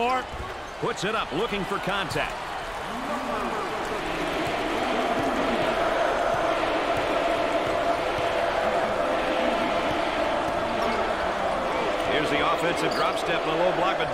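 A crowd cheers and roars steadily in a large echoing arena.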